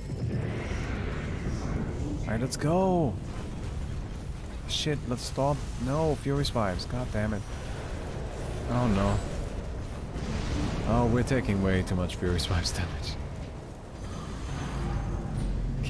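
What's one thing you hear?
Magic spells crackle and boom in a video game.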